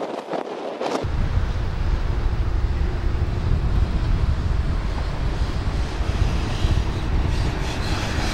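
A heavy train rumbles low along the tracks.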